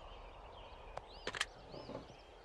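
A handheld radio clicks.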